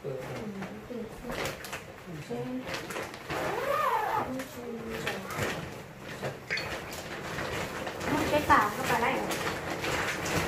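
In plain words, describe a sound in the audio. A woman talks nearby in a casual voice.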